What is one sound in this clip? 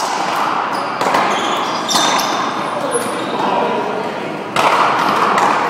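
A rubber ball smacks hard against walls in an echoing hall.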